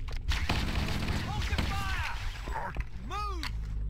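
Gunfire bursts out in loud rapid shots.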